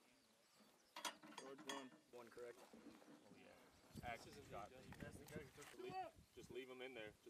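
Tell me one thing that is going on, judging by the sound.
Metal parts click as a man handles a round.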